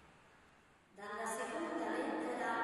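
An organ plays loudly in a large echoing hall.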